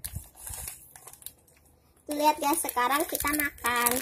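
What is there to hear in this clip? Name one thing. A plastic snack wrapper crinkles.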